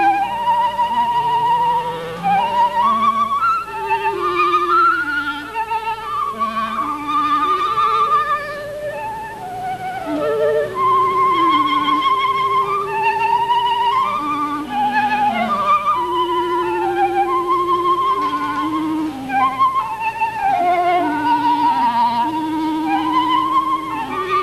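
A clarinet plays a lower melody.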